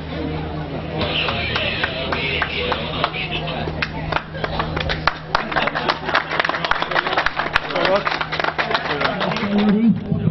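A small crowd claps and applauds.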